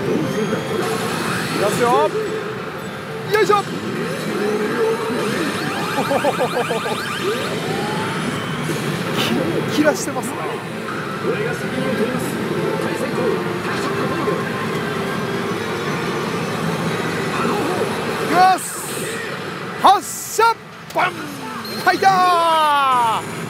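A young man with a headset microphone speaks nearby.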